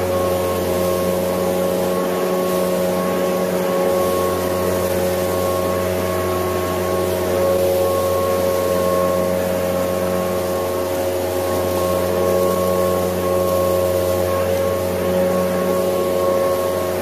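A leaf blower engine drones steadily close by.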